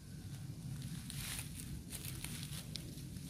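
Dry leaves crunch underfoot.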